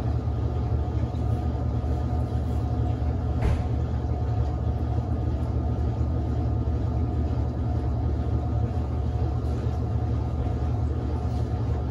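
A washing machine drum spins with a steady low hum.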